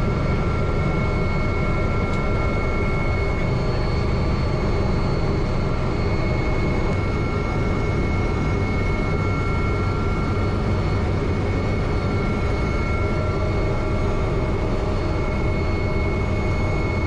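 A high turbine whine hums steadily.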